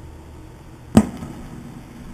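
A stylus drops onto a record with a loud thump.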